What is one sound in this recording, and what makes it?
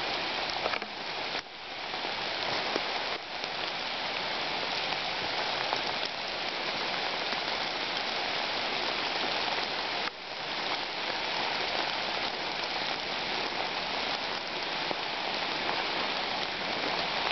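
Wind rustles through leafy trees outdoors.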